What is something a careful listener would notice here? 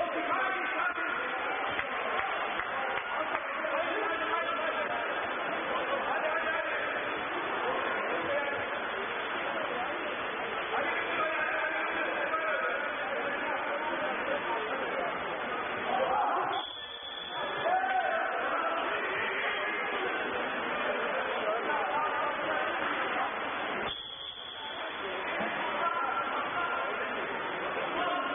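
A crowd of spectators chatters and shouts nearby.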